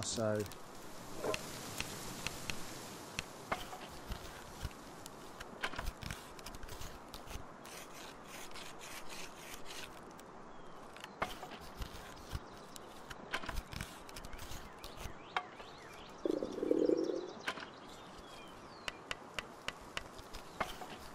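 Tools knock and clatter sharply at a workbench.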